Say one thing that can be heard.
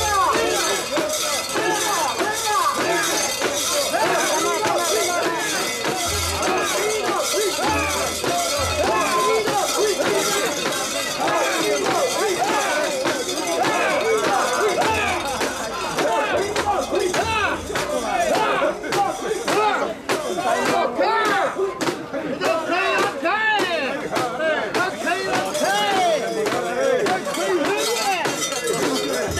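Bells on a carried shrine jingle and clatter.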